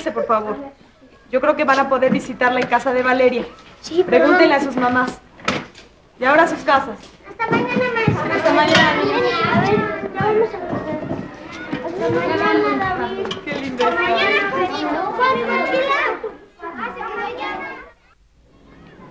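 A woman talks warmly to children nearby.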